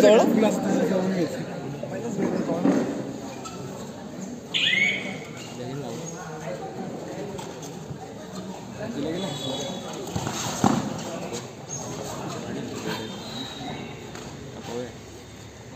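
Bare feet thud and shuffle on a padded mat.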